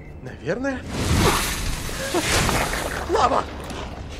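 Fire roars and crackles.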